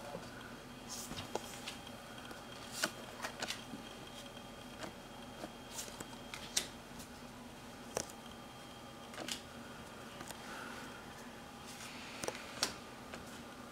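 Playing cards click and slap softly as they are shuffled and flipped by hand.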